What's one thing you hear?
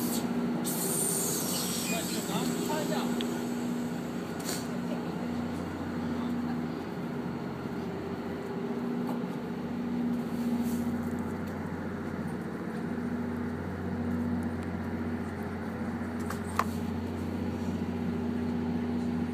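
A train's diesel engine hums and throbs steadily close by.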